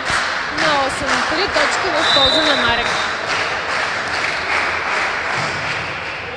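A volleyball is struck hard during a rally.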